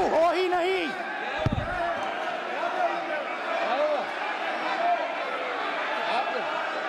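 A crowd of men and women shout and chant over each other in a large echoing hall.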